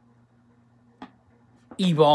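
A metal knife is set down on a wooden table with a light tap.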